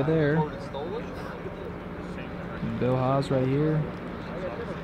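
A man speaks close by, outdoors.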